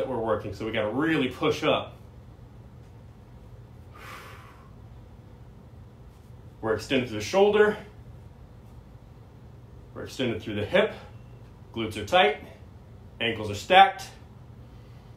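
A man talks calmly and clearly, close by, in short phrases with pauses.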